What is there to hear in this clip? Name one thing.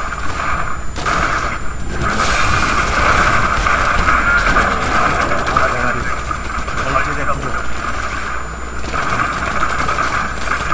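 Magic spells crackle and burst in a game.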